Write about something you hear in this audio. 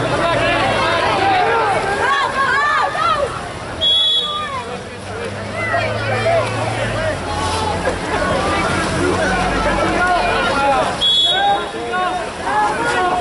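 A crowd of people shout and cheer outdoors.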